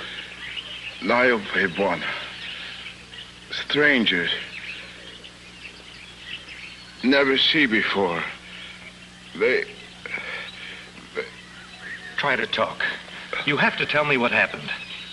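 Men talk in low, urgent voices in short bursts.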